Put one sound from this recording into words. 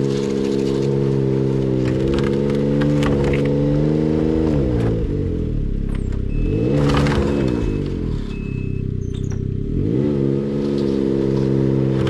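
A snowmobile engine idles close by and revs up and down several times.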